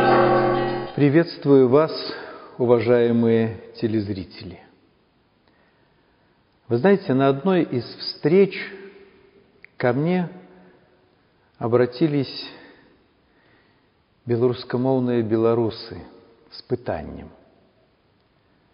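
An elderly man speaks calmly and clearly, close to a microphone, with pauses between phrases.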